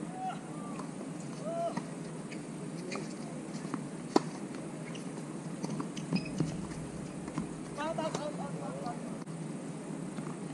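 Tennis balls pop off racquets in a rally.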